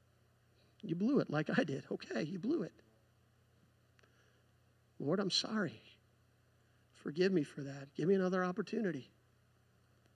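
A man speaks calmly through a microphone and loudspeakers, in short phrases with pauses.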